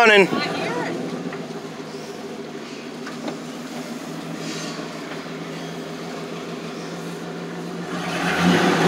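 A vehicle engine hums steadily, heard from inside the cab.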